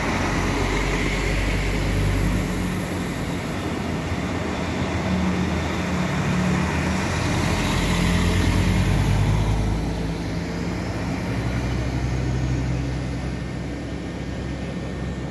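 A diesel multiple-unit train pulls away and rumbles off into the distance.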